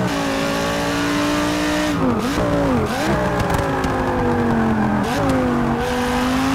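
A racing car engine roars loudly, its pitch dropping and rising through gear changes and braking.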